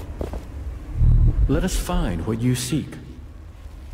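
A magical burst whooshes and crackles loudly.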